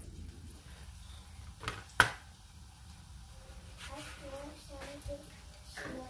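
A knife taps and cuts on a plastic cutting board.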